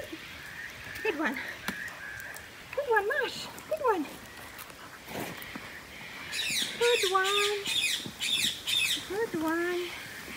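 A dog whines in high, rising and falling cries close by.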